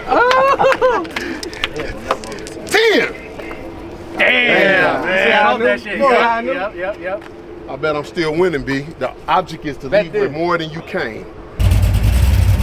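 Young men talk and laugh loudly close by outdoors.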